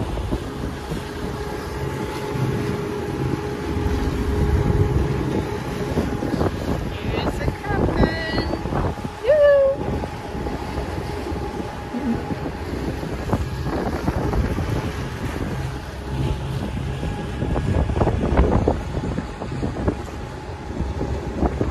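A boat's engine hums steadily.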